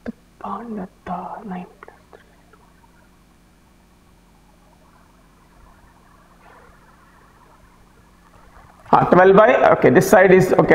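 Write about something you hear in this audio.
A man speaks calmly and clearly, as if explaining.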